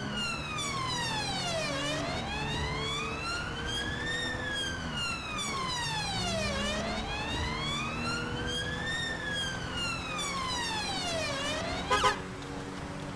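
A siren wails, rising and falling, then cuts off abruptly.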